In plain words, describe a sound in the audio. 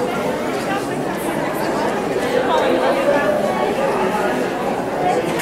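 A group of men and women sing together through a microphone in an echoing hall.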